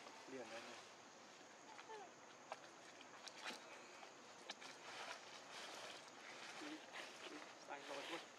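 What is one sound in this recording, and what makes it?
Dry leaves rustle and crunch as small monkeys scamper over them.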